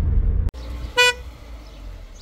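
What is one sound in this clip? A car horn gives a short honk.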